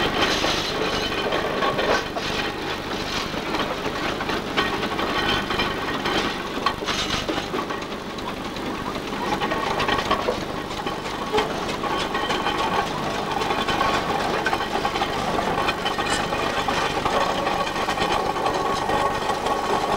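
Heavy iron rollers grind and clank on the road surface.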